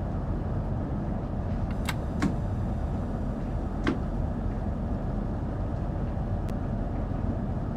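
A train rumbles steadily through a tunnel.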